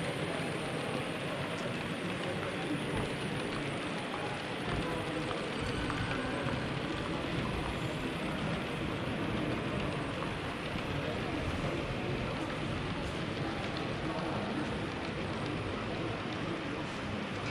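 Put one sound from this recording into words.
A model train rumbles softly along its track.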